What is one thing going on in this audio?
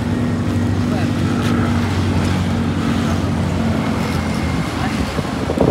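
An engine idles nearby with a steady rumble.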